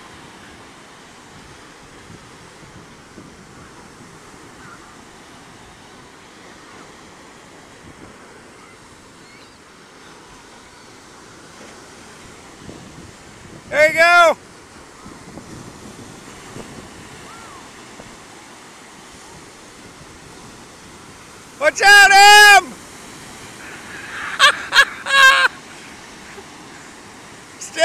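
Waves crash and wash up on the shore.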